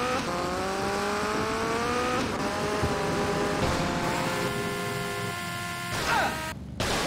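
A motorbike engine revs and whines loudly.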